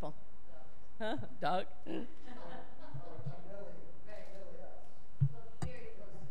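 People in a seated audience laugh.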